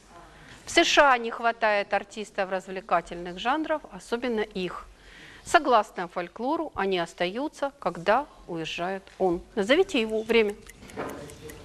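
A woman reads out loud and with feeling, close by.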